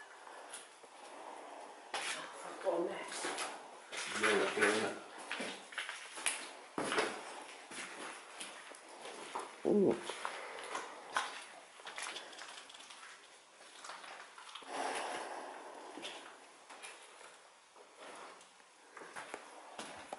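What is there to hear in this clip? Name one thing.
Footsteps crunch over debris and broken glass.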